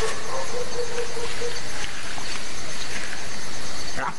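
A lion growls close by.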